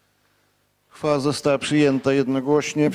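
An elderly man speaks into a microphone, heard through a loudspeaker.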